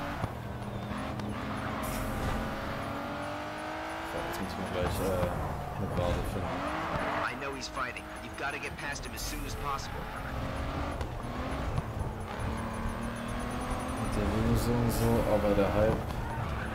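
A race car engine roars and revs at high speed.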